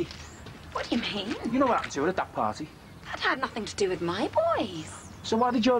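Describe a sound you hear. A woman answers sharply, close by.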